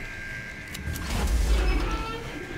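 A heavy metal door unlocks with a clank.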